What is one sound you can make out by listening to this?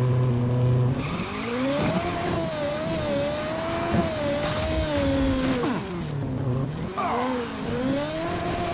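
A race car engine revs and roars as the car speeds up.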